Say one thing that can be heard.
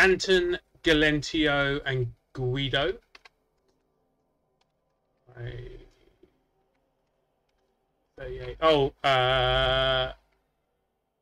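A man talks with animation into a close microphone, with pauses.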